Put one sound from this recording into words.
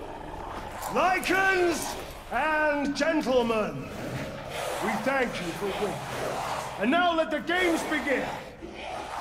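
A man proclaims loudly and theatrically, his voice echoing in a large hall.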